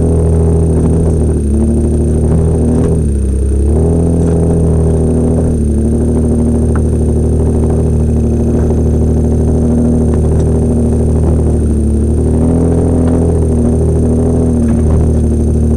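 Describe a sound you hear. A car engine drones loudly up close, rising and falling in pitch as it labours.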